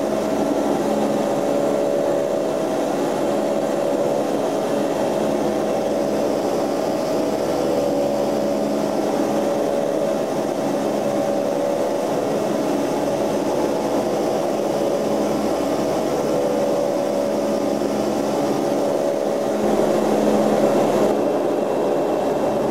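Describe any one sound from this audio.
Air rushes past outside.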